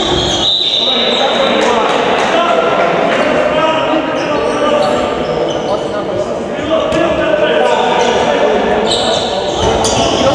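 Young men shout and call to each other in a large echoing hall.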